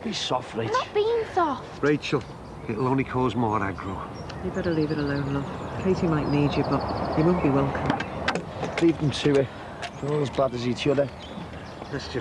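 A middle-aged man speaks with surprise close by.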